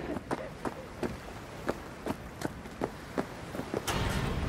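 Footsteps thud on wooden boards.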